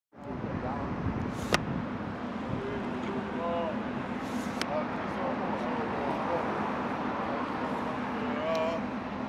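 Traffic hums steadily along a busy street outdoors.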